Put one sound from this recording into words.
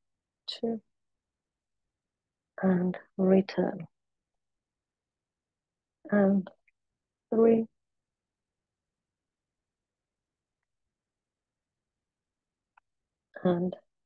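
A woman speaks calmly in short phrases through a microphone, with pauses between them.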